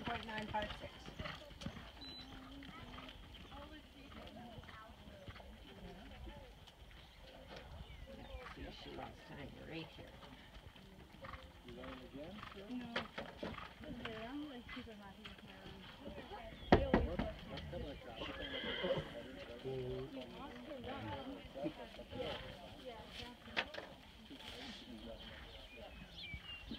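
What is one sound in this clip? A horse's hooves thud on soft dirt at a gallop.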